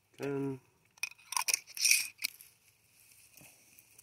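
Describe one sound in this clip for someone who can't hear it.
A metal lid is screwed onto a glass jar.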